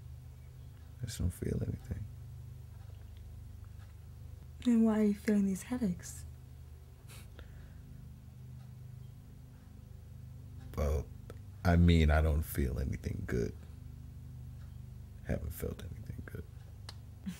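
A man speaks calmly and slowly, close by.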